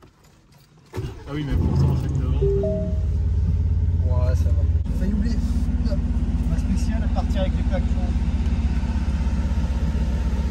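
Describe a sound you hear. A car engine starts up and settles into a deep, steady idle rumble.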